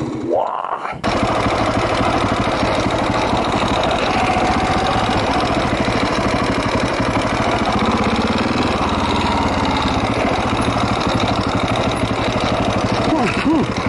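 A dirt bike engine roars steadily while riding over rough ground.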